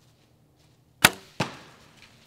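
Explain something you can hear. A bowstring snaps sharply as an arrow is released.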